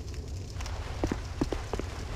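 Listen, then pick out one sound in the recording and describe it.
Footsteps tread on rocky ground.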